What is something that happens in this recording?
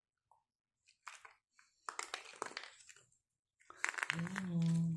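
Small hard candies rattle in a plastic capsule.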